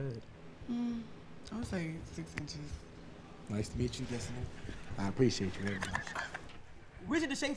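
A young woman talks playfully up close.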